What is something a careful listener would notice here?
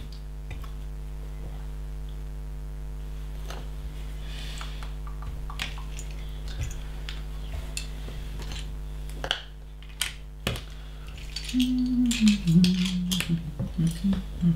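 Small plastic bricks click and rattle as hands sort through them.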